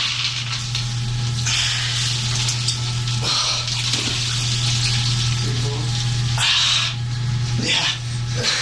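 Water sloshes in a bathtub.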